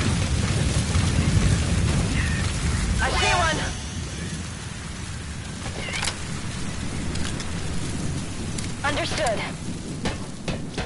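Wind blows steadily through a sandstorm.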